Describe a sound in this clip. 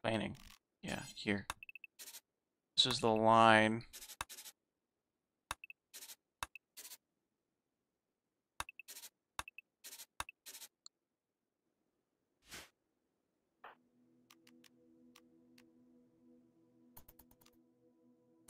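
Short soft clicks and ticks sound at irregular moments.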